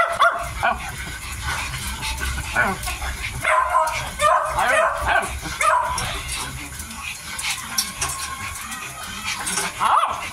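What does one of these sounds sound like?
Puppies whine and squeal in high, wavering cries.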